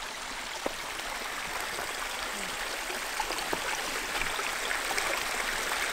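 Water trickles and gurgles nearby.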